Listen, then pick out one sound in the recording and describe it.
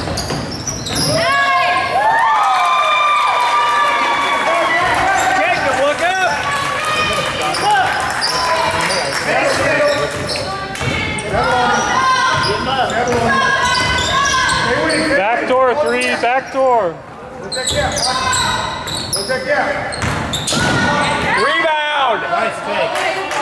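Adult spectators talk and call out in a large echoing gym.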